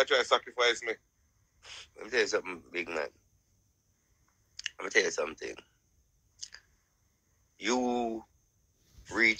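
A man speaks casually over an online call, in short bursts.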